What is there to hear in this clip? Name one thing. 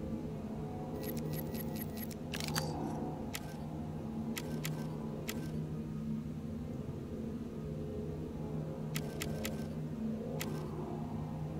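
Short interface clicks tick as menu options change.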